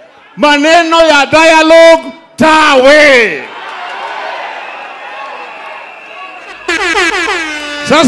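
A man sings loudly and passionately through a microphone over a loudspeaker.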